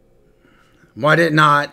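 A man shouts into a microphone.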